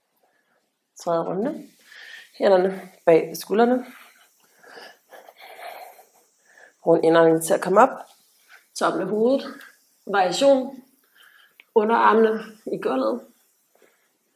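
A woman speaks calmly, giving instructions close to a microphone.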